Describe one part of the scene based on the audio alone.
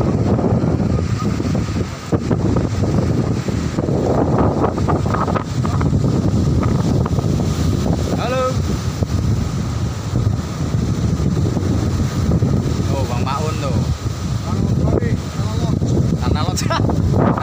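Wind blows hard outdoors, rumbling.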